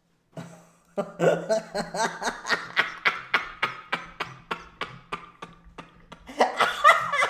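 A man laughs hard in bursts close to a microphone.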